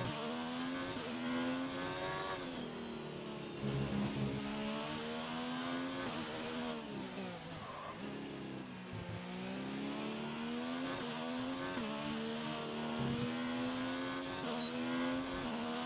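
A racing car engine screams at high revs, rising and dropping sharply as gears change and the car brakes.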